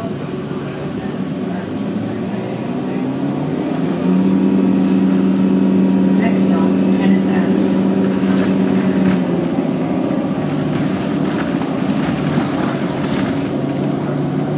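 A bus engine hums steadily from inside, growing louder for a while and then easing off.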